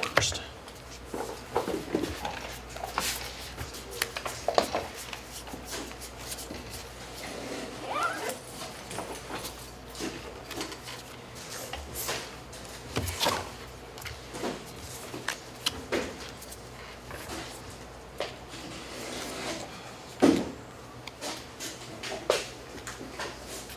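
Playing cards shuffle and tap on a soft mat.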